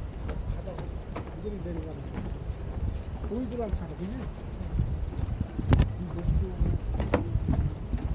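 Footsteps thud on a wooden walkway.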